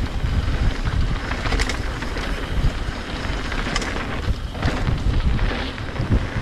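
Wind rumbles loudly across a close microphone.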